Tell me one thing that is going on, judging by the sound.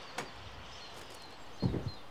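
A heavy wooden door scrapes and thuds as it is pulled open.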